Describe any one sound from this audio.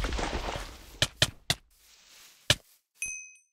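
Sword blows land in quick, sharp hits.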